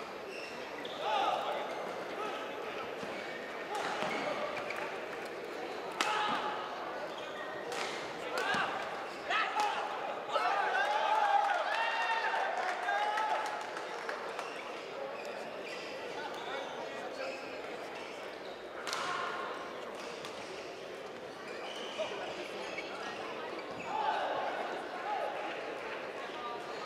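A crowd chatters and murmurs in a large echoing hall.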